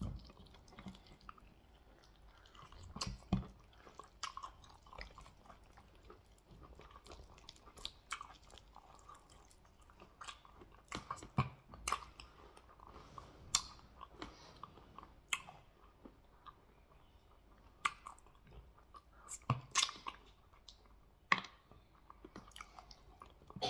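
A man chews and smacks his lips close up.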